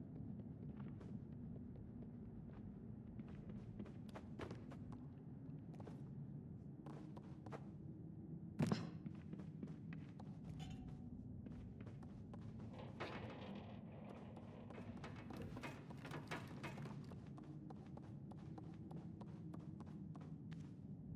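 Small footsteps patter on a creaking wooden floor.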